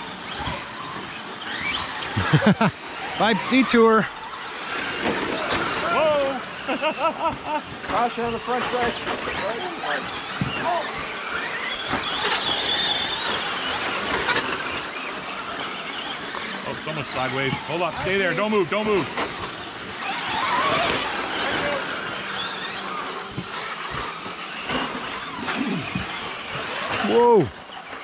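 Small remote-control car motors whine as the cars race over dirt.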